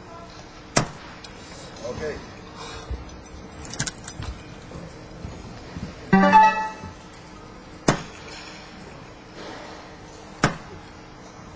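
Darts thud into a board.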